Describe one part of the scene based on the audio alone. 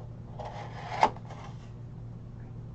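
A cardboard box flap rustles and clicks as it is opened.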